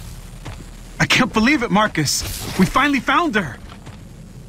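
A man speaks in a deep, gruff voice.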